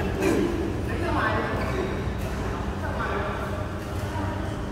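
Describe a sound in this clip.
Men talk and call out across the hall.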